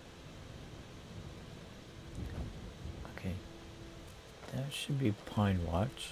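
A stream rushes over rocks.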